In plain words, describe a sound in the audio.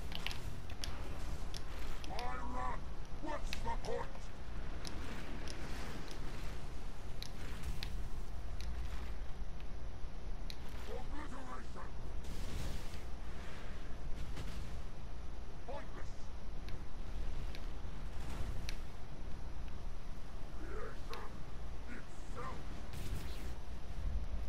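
Spells crackle and burst in quick succession.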